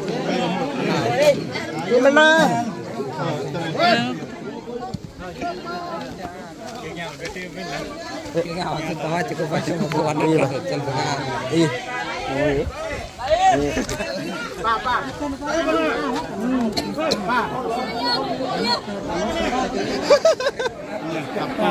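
A crowd of men and women chatter loudly nearby outdoors.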